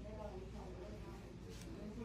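A button clicks as a finger presses it.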